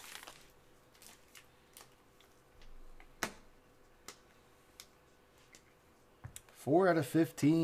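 Cards rustle and click as hands handle them.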